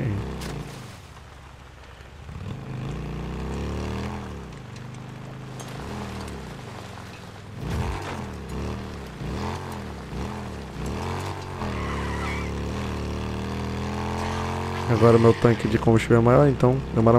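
A motorcycle engine hums and revs up and down as it rides over rough ground.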